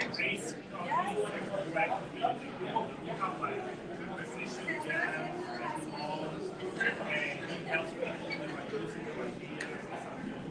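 A crowd of men and women chatters throughout.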